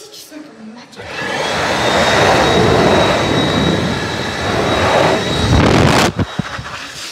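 A hand dryer blows air with a loud, steady roar.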